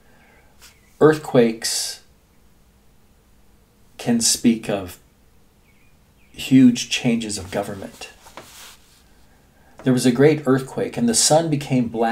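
An elderly man speaks calmly and closely into a microphone, in short bursts with pauses.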